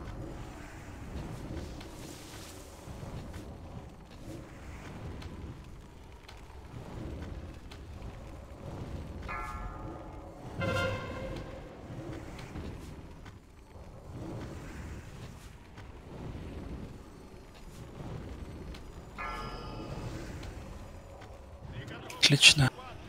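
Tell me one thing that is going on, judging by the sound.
Magical spells whoosh and crackle in a noisy battle.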